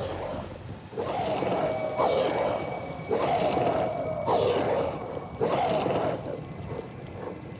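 A creature shrieks repeatedly.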